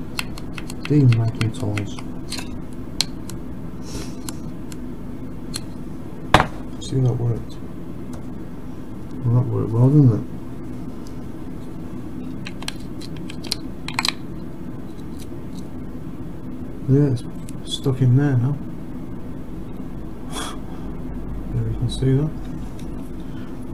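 Small pliers click and snap now and then.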